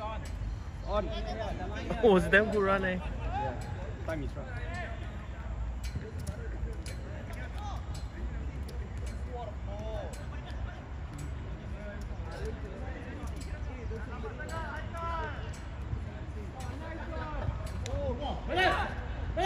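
Young players shout and call to each other across an open field.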